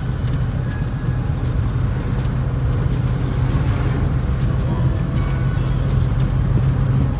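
A car engine hums steadily from inside the vehicle.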